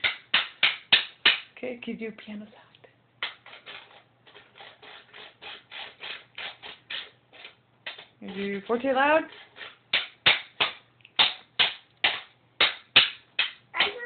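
A toy hammer taps rapidly on a wooden toy.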